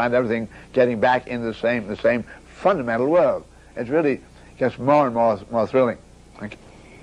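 An elderly man speaks with animation, close to a microphone.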